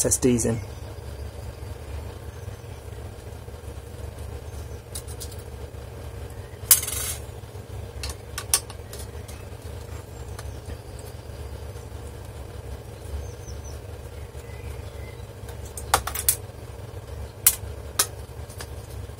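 A screwdriver and a metal hard disk bracket click and tap against each other.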